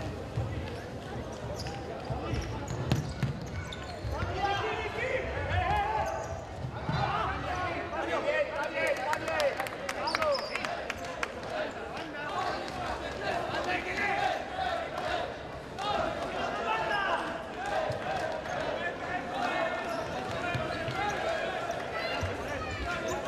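A ball thuds as players kick it on a hard court.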